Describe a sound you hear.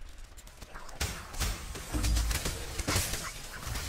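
Game combat sounds clash and thump loudly.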